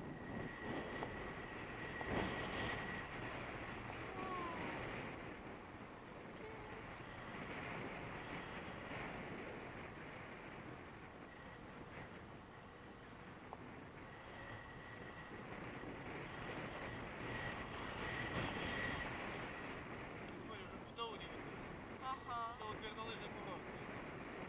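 Wind rushes loudly and steadily outdoors.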